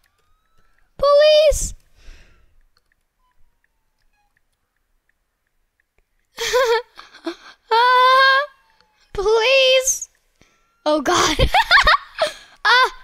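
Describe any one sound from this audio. A young boy talks and exclaims excitedly into a close microphone.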